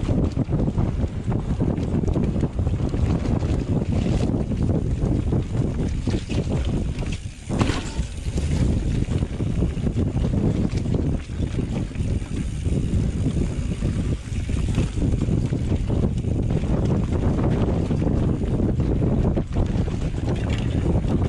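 Wind rumbles loudly past the rider.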